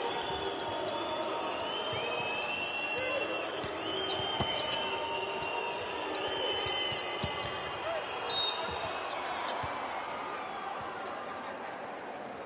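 Basketball shoes squeak sharply on the court.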